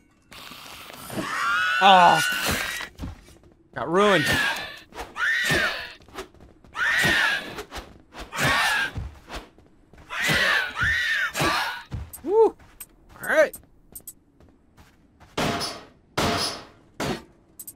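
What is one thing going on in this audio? Weapons strike in a noisy fight.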